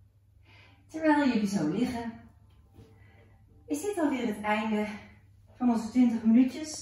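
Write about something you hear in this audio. A woman speaks calmly and softly, close by.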